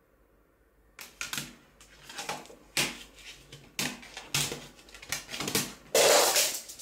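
A plastic disc case clicks and rattles as hands open it.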